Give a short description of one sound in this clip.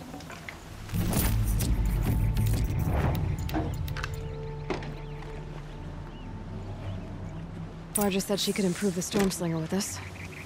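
Metallic chimes ring as items are picked up.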